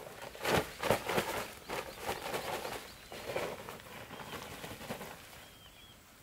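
Cement powder pours from a sack onto a pile with a soft rushing hiss.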